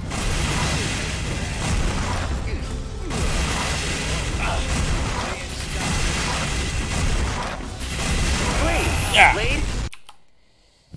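A heavy gun fires rapid blasts.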